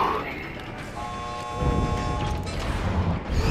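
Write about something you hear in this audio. A magical power hums with a ringing tone.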